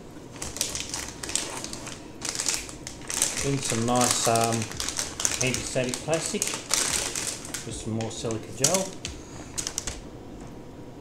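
A plastic bag crinkles and rustles loudly as it is handled.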